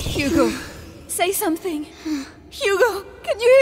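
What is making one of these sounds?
A young woman speaks pleadingly nearby.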